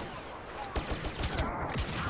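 A blaster rifle fires.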